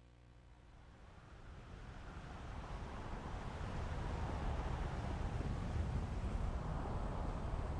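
Water rushes and churns in a steady, low roar that slowly swells.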